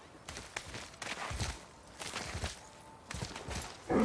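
Hands scrape and grip rock while climbing.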